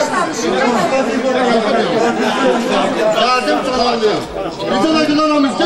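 A crowd of people sings loudly together close by.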